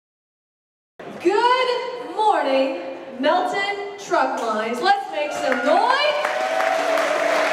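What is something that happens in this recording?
A young woman sings into a microphone, heard through loudspeakers in an echoing hall.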